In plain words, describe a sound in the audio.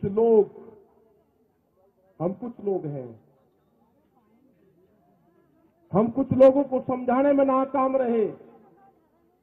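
A middle-aged man speaks forcefully into a microphone.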